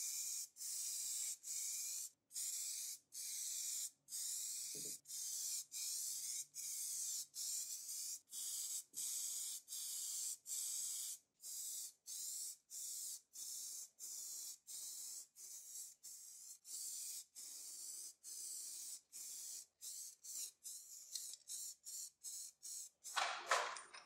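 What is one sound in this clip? A spray can hisses in short repeated bursts.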